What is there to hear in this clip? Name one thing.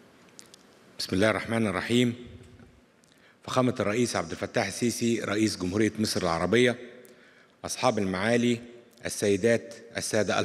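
A middle-aged man speaks calmly into a microphone, heard through loudspeakers in a large hall.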